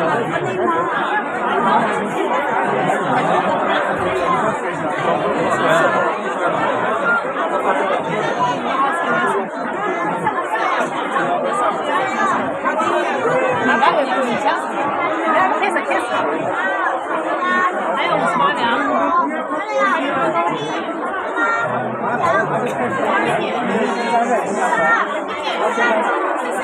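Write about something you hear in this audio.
A large crowd chatters in a large echoing hall.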